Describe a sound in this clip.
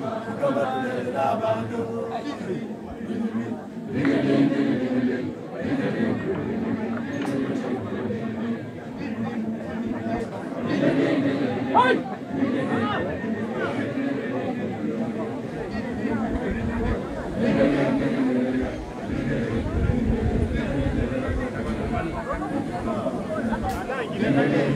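A large crowd of men murmurs and chants together outdoors.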